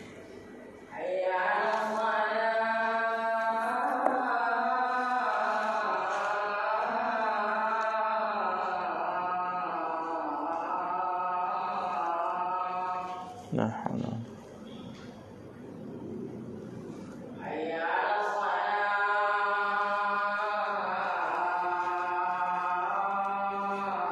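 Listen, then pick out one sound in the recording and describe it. A man chants a long melodic recitation through a microphone.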